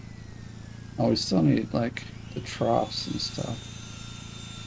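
A power saw cuts through a log in short loud bursts.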